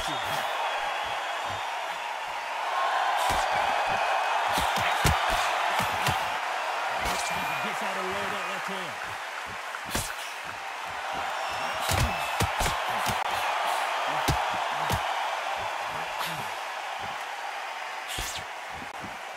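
A crowd roars steadily.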